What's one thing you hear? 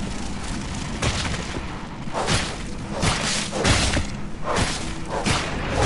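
Blows land with sharp hits during a fight.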